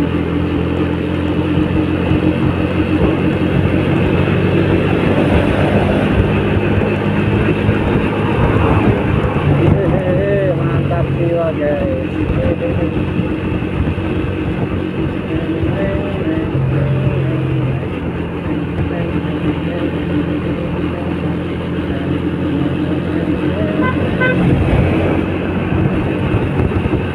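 A motor scooter engine hums steadily up close.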